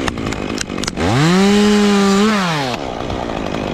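A chainsaw cuts through wood.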